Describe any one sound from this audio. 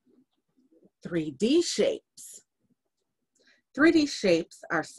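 A woman reads aloud close to a microphone, with pauses.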